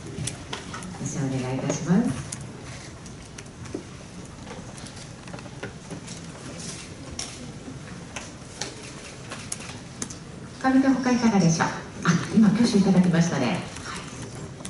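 A young woman speaks cheerfully through a microphone.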